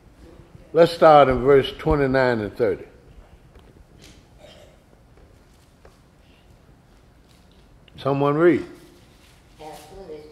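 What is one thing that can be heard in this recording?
An elderly man speaks with feeling into a microphone, in an echoing room.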